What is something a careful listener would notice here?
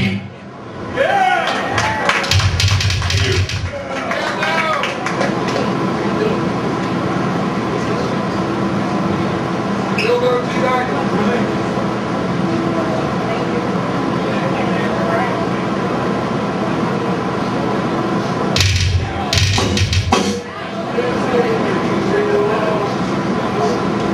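A man growls into a microphone through loudspeakers.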